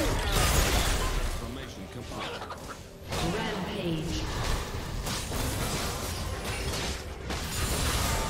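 Game spell effects and sword hits crash and whoosh in a busy fight.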